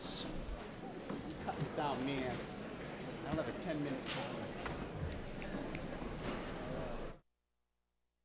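A crowd of men and women chatters in a large echoing hall.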